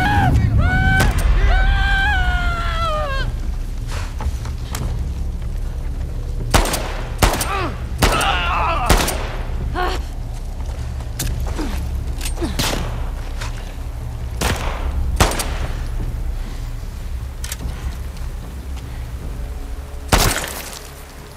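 Gunshots ring out sharply, one at a time.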